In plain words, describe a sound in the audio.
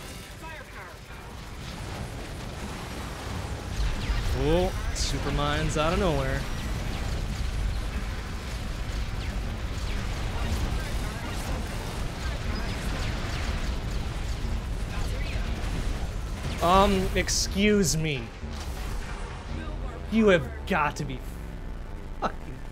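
Video game effects blast and crackle steadily.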